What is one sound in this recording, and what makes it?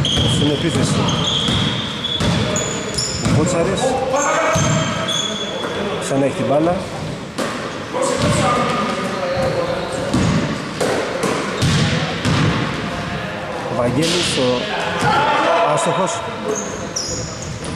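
Men shout and call out to each other in a large echoing hall.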